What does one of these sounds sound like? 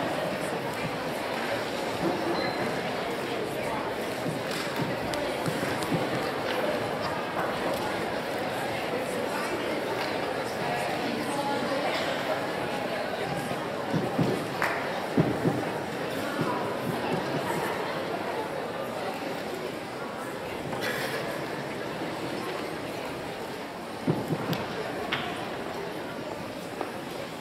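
A large choir of young voices sings together in a big echoing hall.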